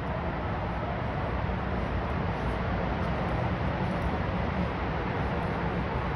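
Two dogs growl and snarl as they wrestle.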